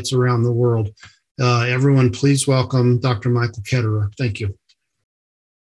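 A middle-aged man speaks calmly into a microphone over an online call.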